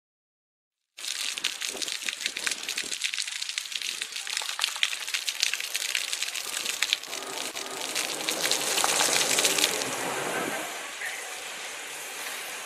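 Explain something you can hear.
Jets of water splash and patter onto wet pavement.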